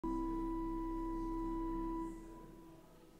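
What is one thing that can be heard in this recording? A congregation holds a final sung note in a large echoing hall.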